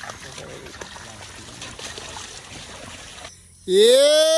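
Footsteps squelch and splash through wet mud.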